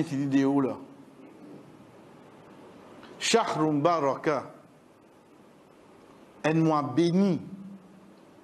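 A man speaks calmly into a nearby microphone, in short phrases with pauses.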